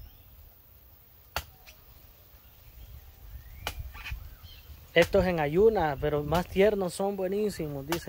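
A machete chops into a coconut husk with sharp knocks.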